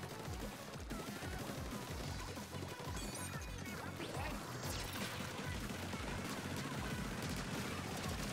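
Wet paint splatters in quick bursts.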